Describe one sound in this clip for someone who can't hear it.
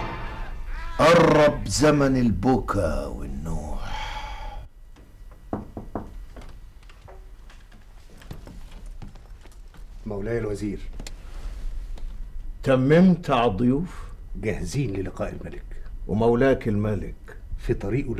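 An elderly man speaks with emotion, close by.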